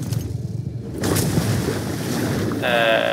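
Water sloshes and ripples with swimming strokes.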